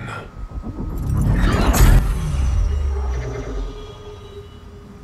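A deep energy blast booms and rumbles.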